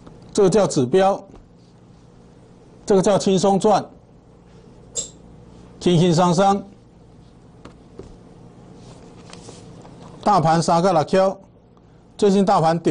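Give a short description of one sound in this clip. An older man explains calmly, close to a lapel microphone.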